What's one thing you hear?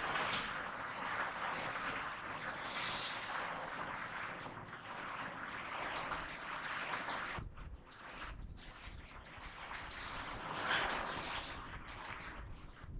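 An eraser rubs across a whiteboard with a steady swishing.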